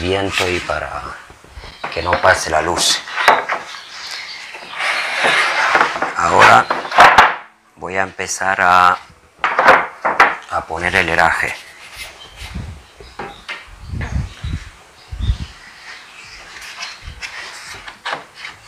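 Wooden boards knock and clatter against each other.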